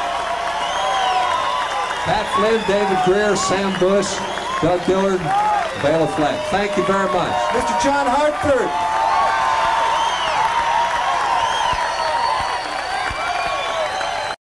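Acoustic guitars and banjos strum together.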